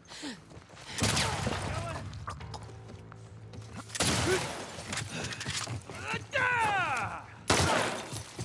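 A rifle fires loud, echoing shots.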